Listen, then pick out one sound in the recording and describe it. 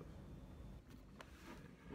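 A middle-aged man chuckles softly.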